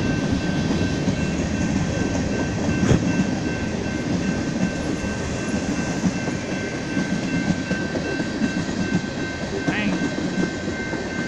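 A long freight train rumbles past close by with wheels clattering on the rails.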